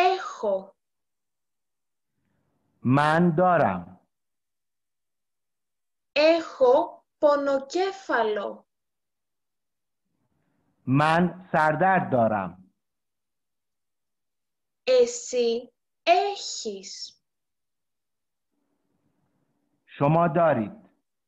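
A young woman speaks slowly and clearly into a microphone, pausing between words, as in an online call.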